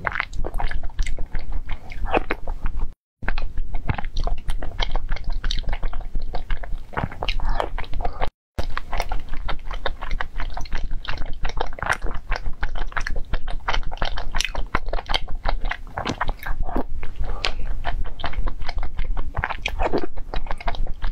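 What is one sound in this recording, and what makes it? A young woman slurps soup from a spoon close to a microphone.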